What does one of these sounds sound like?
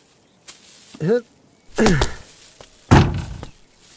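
A man jumps down onto the ground with a thud.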